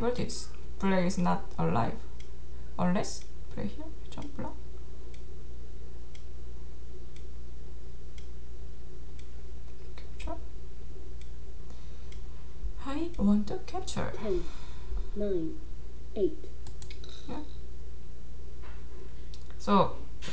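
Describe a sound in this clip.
A young woman speaks calmly and thoughtfully into a close microphone, with pauses.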